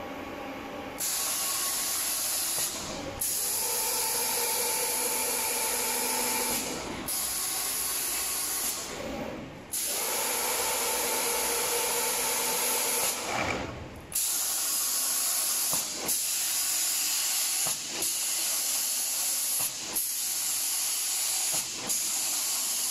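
A spray gun hisses loudly in repeated bursts.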